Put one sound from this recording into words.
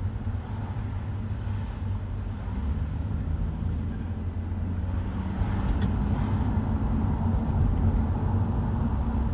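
A car engine hums steadily while driving along a city street.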